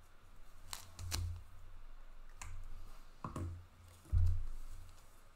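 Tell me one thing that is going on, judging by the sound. Plastic card holders knock and clatter on a table.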